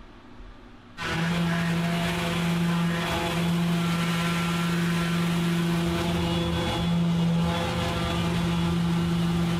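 An electric sander hums and whirs steadily.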